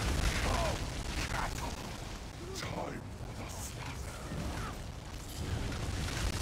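Magic spells crackle and whoosh in a fierce battle.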